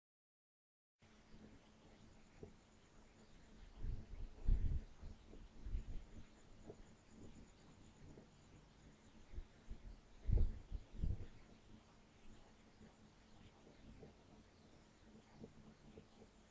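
A marker squeaks and scratches across a whiteboard.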